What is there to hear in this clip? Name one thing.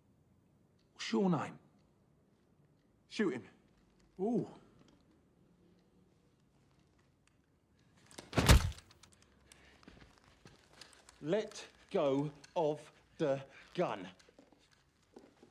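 A second man speaks tensely in reply.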